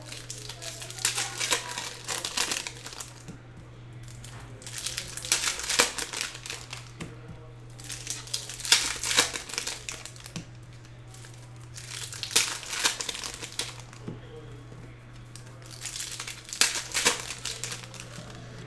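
Foil card packs crinkle and tear open in bursts.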